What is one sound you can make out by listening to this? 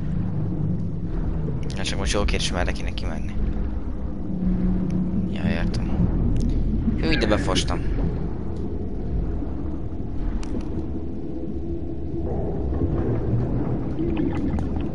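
A low rumble drones steadily.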